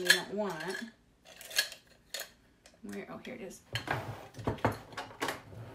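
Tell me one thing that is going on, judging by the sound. Metal tools rattle in a container.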